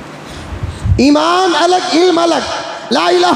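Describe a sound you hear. An elderly man chants loudly in a drawn-out, melodic voice through a microphone.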